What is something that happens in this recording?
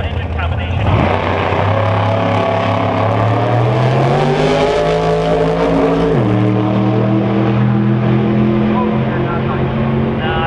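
A race car engine roars and climbs in pitch as the car speeds away.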